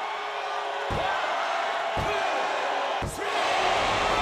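A referee's hand slaps the mat for a count.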